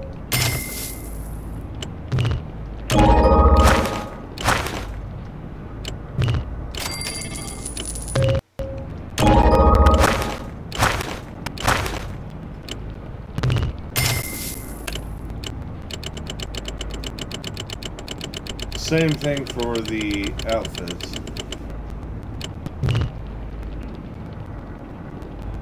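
Short electronic clicks and chimes sound as game menu items are chosen.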